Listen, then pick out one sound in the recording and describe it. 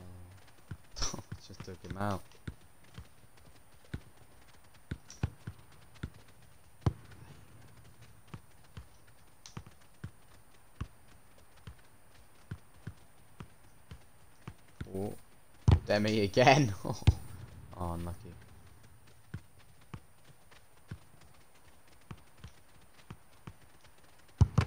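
A football is kicked with short, dull thuds, again and again.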